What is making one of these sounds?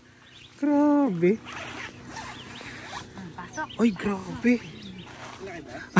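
Tent fabric rustles and a zipper rasps.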